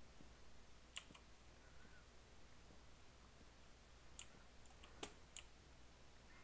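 Wooden blocks break with short, sharp pops.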